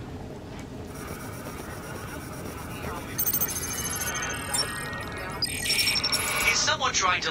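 Electronic beeps chirp as a radio signal locks in.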